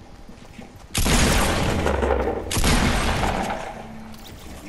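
Gunshots blast loudly in quick bursts.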